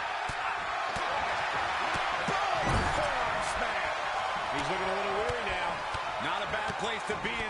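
Blows and bodies thud on the ring mat.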